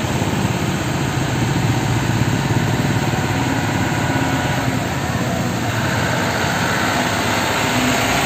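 A heavy truck engine rumbles loudly as the truck slowly comes closer.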